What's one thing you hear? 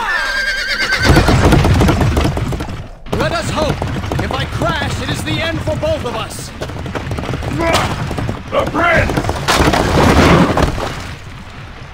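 Chariot wheels rumble over stone.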